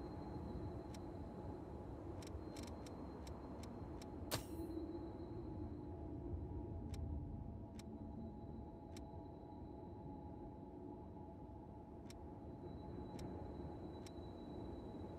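Soft interface clicks tick now and then.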